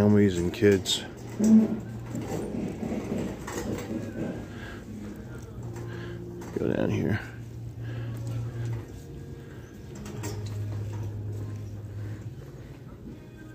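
A shopping cart rolls and rattles over a hard floor.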